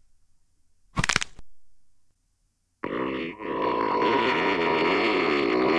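A man shouts loudly and with animation, close to a microphone.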